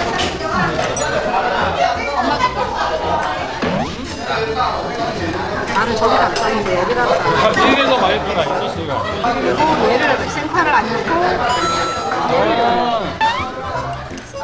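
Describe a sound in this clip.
Chopsticks clink against plates and bowls.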